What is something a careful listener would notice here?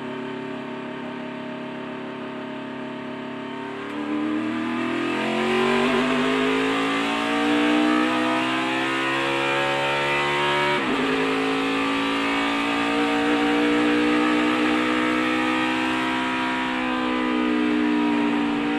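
A race car engine roars loudly, revving up as the car accelerates.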